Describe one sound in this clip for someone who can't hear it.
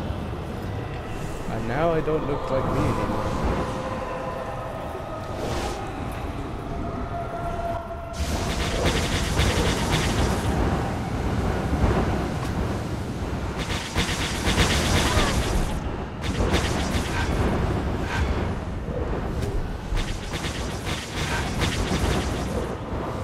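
Small laser shots fire in quick bursts.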